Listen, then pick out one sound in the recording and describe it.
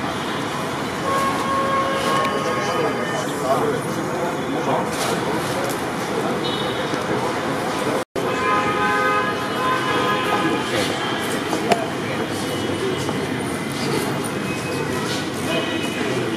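Men greet each other and talk up close.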